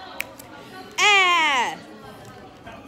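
A young woman cries out in a loud, falling wail.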